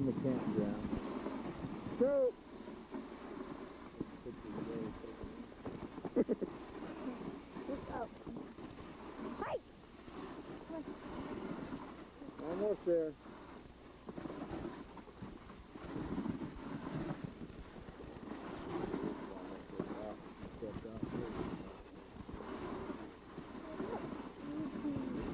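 Sled runners hiss over packed snow.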